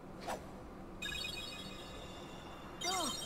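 A magical chime shimmers and sparkles.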